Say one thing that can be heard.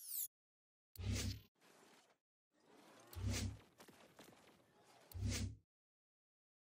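Soft whooshing menu sounds play as options switch.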